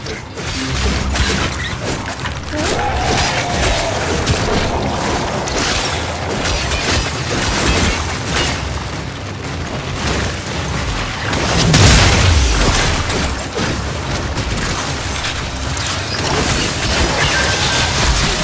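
Gunfire and blasts crackle rapidly in a video game battle.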